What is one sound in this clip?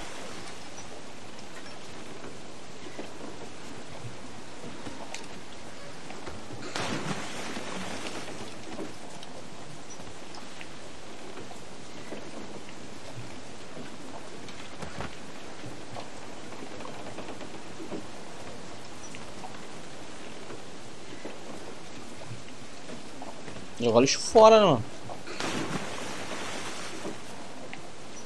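Rough sea waves rush and splash steadily against a wooden ship.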